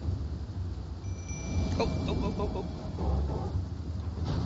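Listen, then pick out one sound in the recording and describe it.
A shimmering magical chime rings out.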